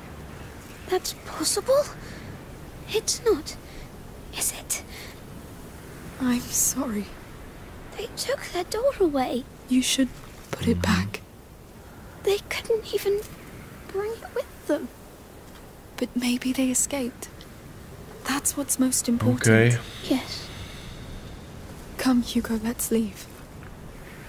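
A man speaks quietly close to a microphone.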